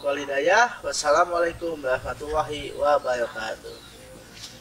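A young man speaks with animation close by.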